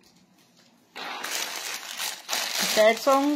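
A plastic bag crinkles as it is opened.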